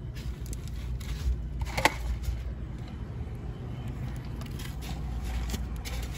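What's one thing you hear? A paper cup with ice rattles in a cardboard tray.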